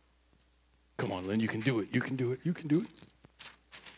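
A man speaks briefly through a headset microphone.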